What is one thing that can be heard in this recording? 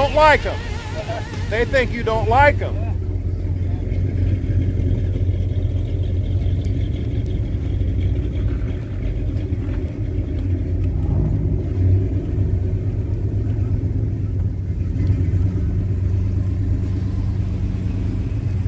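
A car engine rumbles deeply as it idles and drives slowly nearby.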